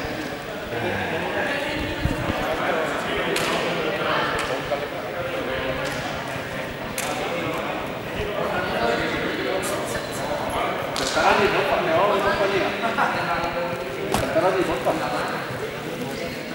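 Young people talk and call out across a large echoing hall.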